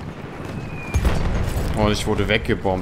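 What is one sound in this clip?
An aircraft crashes with a loud explosion.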